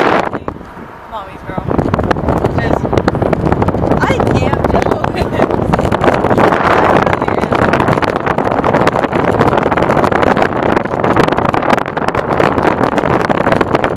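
A young woman talks close by, raising her voice over the wind.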